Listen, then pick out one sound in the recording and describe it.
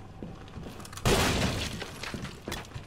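A loud crash of falling debris bursts out and fades.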